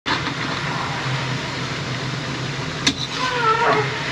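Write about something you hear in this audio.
A metal spatula scrapes and stirs in a metal pan.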